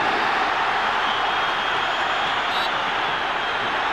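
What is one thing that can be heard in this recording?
Men shout in protest close by.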